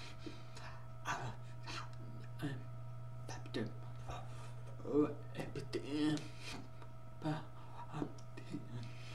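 A man makes short, soft vocal sounds and mouth noises close by.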